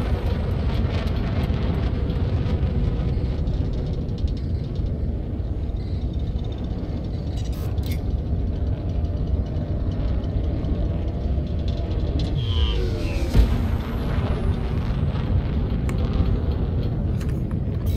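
A spacecraft engine rumbles low and steady.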